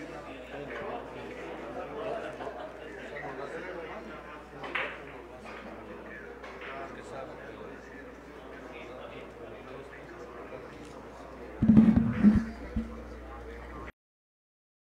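People murmur and talk quietly in the background.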